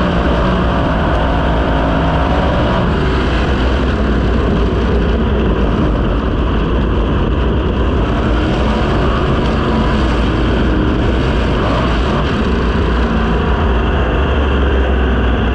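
A race car engine roars loudly and steadily up close.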